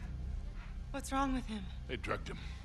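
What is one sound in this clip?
A woman asks a worried question.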